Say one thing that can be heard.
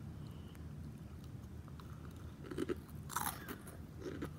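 A girl crunches on a crisp snack.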